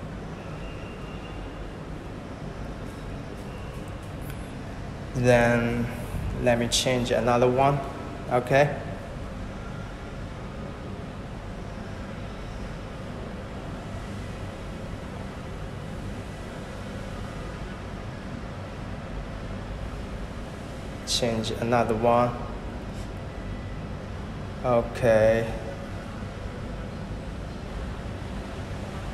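A spinning fan whirs steadily nearby.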